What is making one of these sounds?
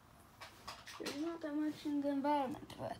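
An electronic toy plays a short tune.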